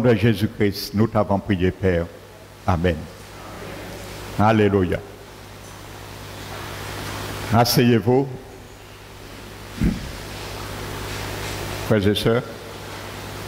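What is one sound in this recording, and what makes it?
A man speaks with animation through a microphone, in short bursts with pauses.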